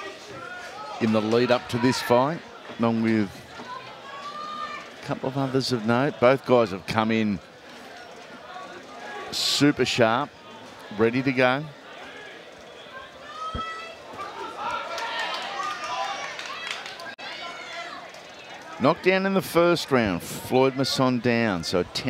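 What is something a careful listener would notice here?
A crowd murmurs in a large hall.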